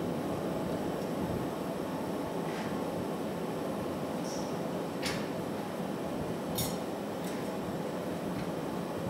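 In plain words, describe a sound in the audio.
A glass furnace roars steadily.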